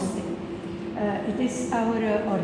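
An older woman speaks calmly nearby.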